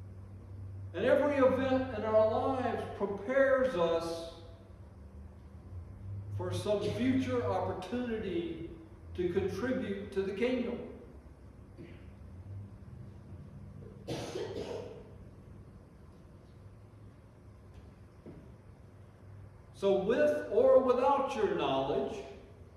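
An elderly man preaches with emphasis into a microphone, with pauses between phrases, in a slightly echoing hall.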